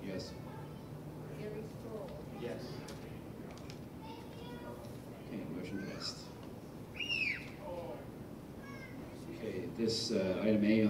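An adult man speaks calmly through a microphone in a large echoing hall.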